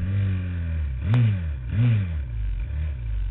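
A quad bike engine revs nearby.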